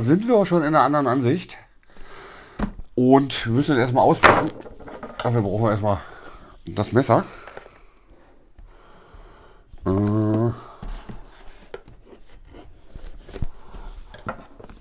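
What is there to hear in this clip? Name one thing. A cardboard box scrapes and rustles in hands.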